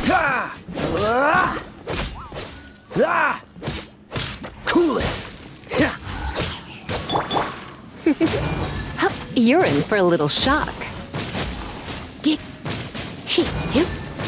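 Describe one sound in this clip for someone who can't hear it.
Magic attacks crackle and burst in quick succession.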